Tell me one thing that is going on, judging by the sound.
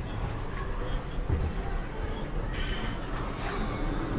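Elevator doors slide shut.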